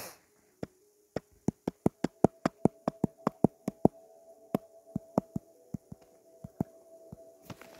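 Quick, light clicks tick one after another.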